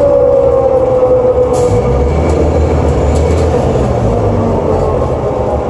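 A bus interior rattles softly over the road.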